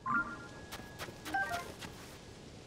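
A short chime rings as a plant is picked up.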